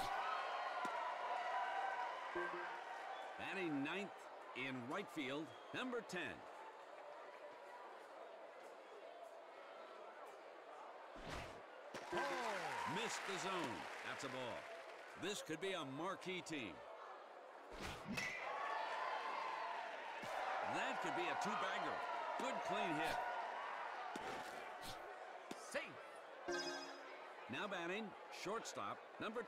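A crowd cheers and murmurs in a stadium.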